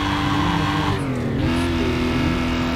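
A car engine briefly drops in pitch as the gear changes, then roars on.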